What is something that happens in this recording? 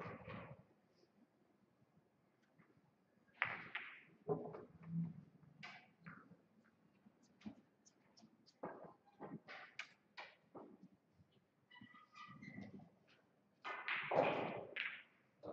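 Billiard balls clack together as they are gathered and racked on a pool table.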